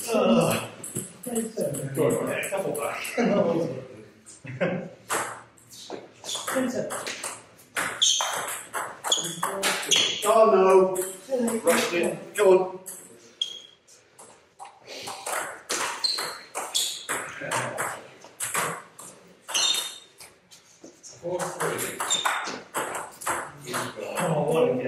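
A ping pong ball clicks back and forth on paddles and a table.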